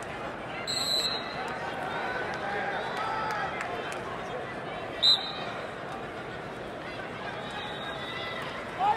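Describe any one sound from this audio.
A crowd murmurs and calls out in a large echoing arena.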